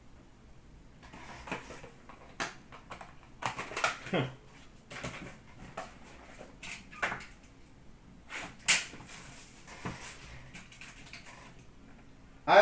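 Cardboard boxes and packs rustle and knock as hands handle them.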